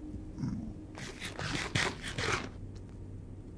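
Loud crunchy munching sounds of eating come in quick bursts.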